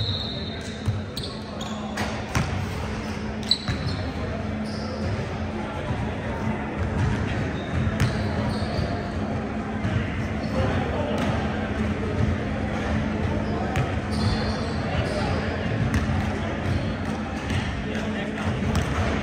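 Young players chatter and call out in an echoing gym.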